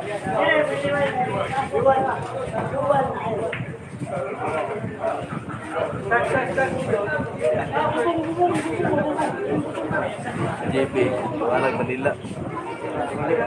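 Several men talk and chatter nearby in a lively room.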